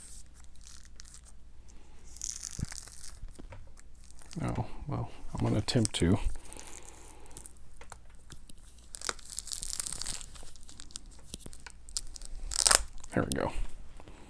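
Plastic packaging crinkles and rustles as hands handle it.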